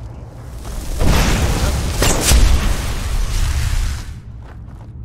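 A magical blast whooshes and rumbles.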